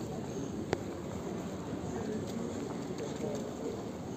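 A man's footsteps tap on cobblestones close by.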